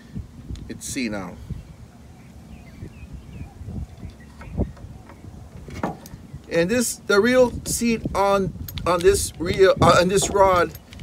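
Small parts click and rattle as a fishing reel is handled.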